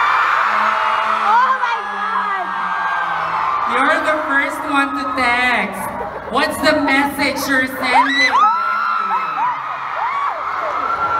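An audience screams and cheers.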